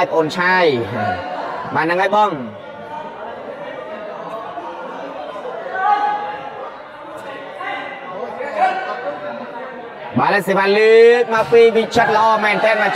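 Young men shout loudly in a large echoing hall.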